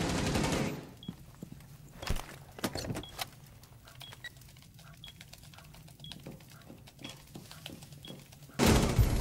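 Keys click rapidly on a keyboard.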